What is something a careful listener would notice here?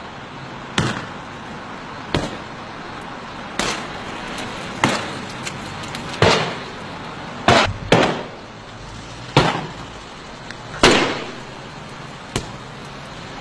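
Heavy blows smash into a car's windshield, cracking the glass.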